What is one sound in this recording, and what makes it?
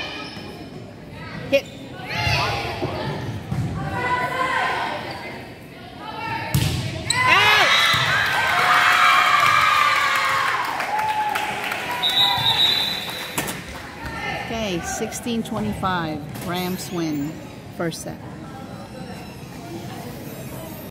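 A crowd of young women and girls cheers and shouts in an echoing gym.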